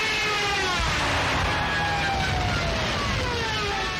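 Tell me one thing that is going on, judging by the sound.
Bombs explode in the distance.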